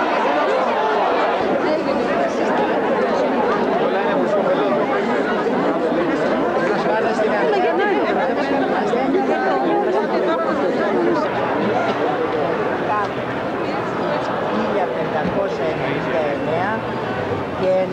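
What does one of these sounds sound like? A large crowd of men and women talks all at once, close by, outdoors.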